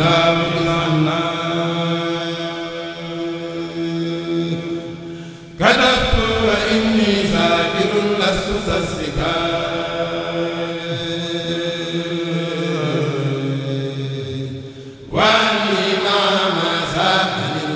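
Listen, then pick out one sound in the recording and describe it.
Young men chant together through microphones in a loud, melodic religious song.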